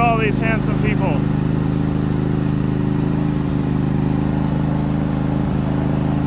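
A vintage car engine chugs steadily at idle up close.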